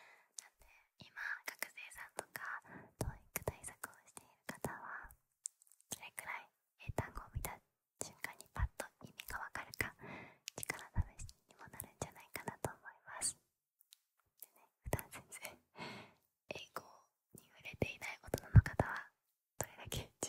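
A young woman whispers softly and closely into a microphone.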